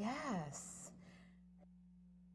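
A woman speaks briefly close to a microphone.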